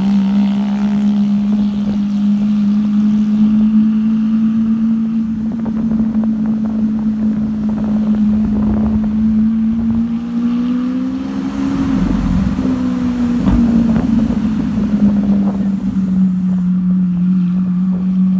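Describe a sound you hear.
A sports car engine hums steadily close by.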